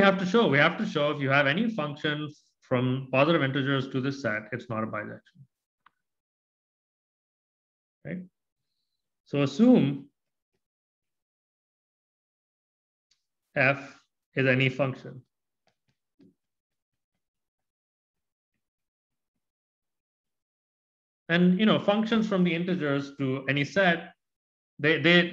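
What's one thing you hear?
A man speaks calmly into a microphone, explaining in pauses.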